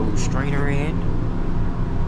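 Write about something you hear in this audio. A finger taps a touchscreen.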